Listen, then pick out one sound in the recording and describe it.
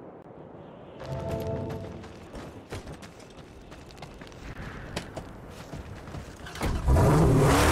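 A car engine roars as the car drives off.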